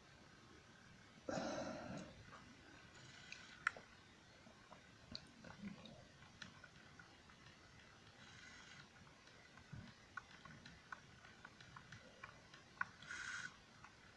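Buttons on a handheld game console click softly under the thumbs.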